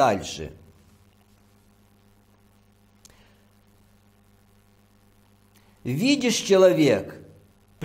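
A middle-aged man reads out calmly into a close microphone.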